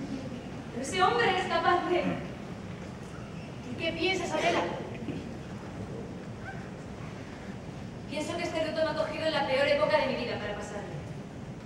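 A young woman speaks with feeling across a hall, in bursts with pauses.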